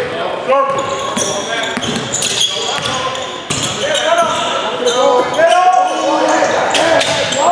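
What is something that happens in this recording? A crowd murmurs and calls out in the stands.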